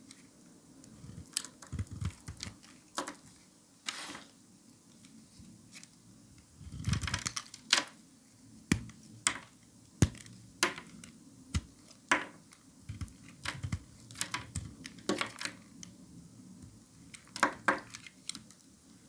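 A blade scrapes and slices through soft soap, close up.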